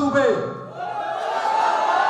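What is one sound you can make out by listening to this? A young man answers into a microphone over loudspeakers.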